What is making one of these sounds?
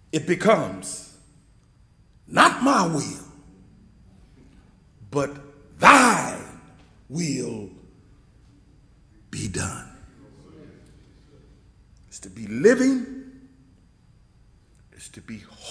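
An elderly man preaches through a microphone in short, forceful bursts with pauses between them.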